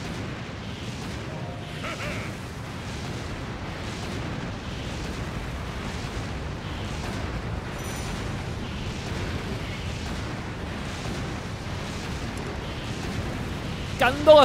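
Explosions boom and crackle repeatedly.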